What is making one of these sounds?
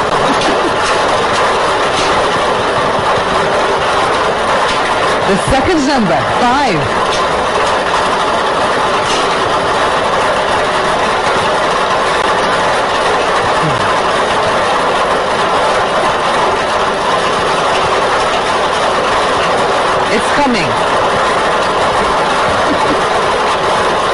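A lottery machine's blower roars steadily as balls rattle and tumble inside.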